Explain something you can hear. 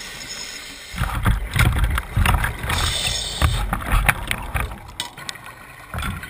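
Air bubbles from a diver's breathing gurgle and rumble up close underwater.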